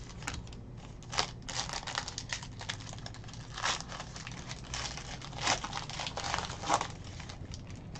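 A foil wrapper crinkles and tears as it is pulled open.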